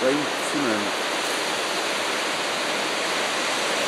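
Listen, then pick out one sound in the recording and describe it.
A river rushes and churns far below.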